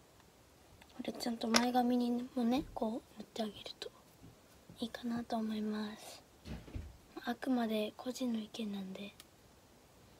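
A young girl talks calmly close by.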